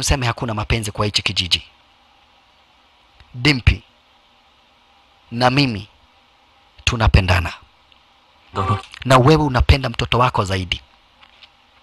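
A man speaks in a low, tense voice, close by.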